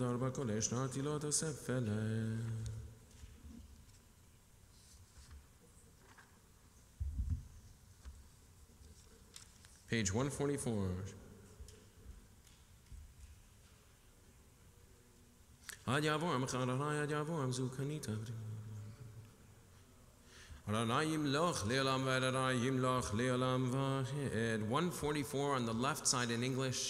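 A man chants in a steady, melodic voice through a microphone in a large echoing hall.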